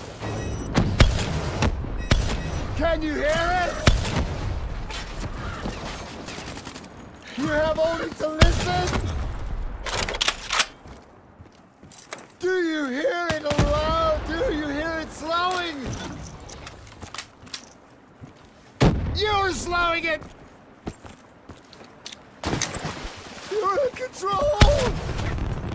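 Gunshots and explosions boom in short loud bursts.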